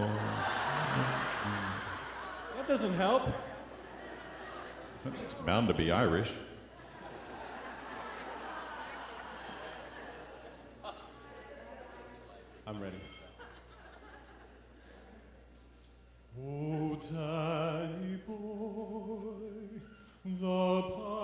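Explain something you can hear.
A man talks with animation through a microphone in a large echoing hall.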